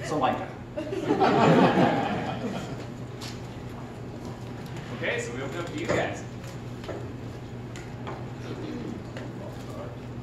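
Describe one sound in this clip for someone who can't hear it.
A young man speaks to an audience through a microphone in a large room.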